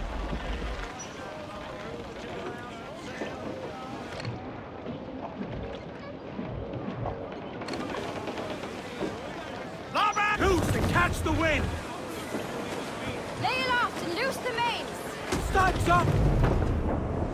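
Waves wash against a sailing ship's hull.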